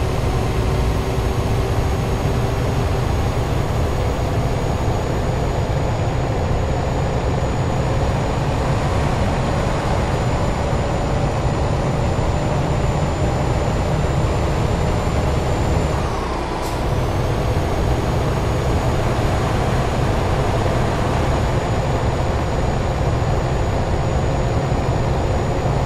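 Tyres hum on a smooth road.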